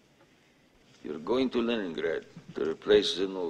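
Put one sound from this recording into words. A man speaks firmly and calmly, close by.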